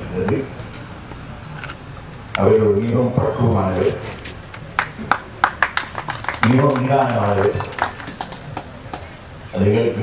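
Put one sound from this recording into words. An elderly man speaks slowly and with pauses into a microphone.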